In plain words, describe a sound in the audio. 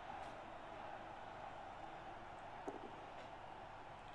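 Dice clatter as they are rolled.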